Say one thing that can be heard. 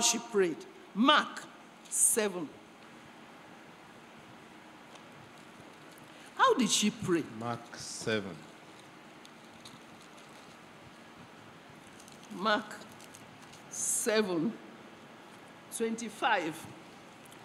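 An elderly woman speaks slowly through a microphone, in short phrases with long pauses.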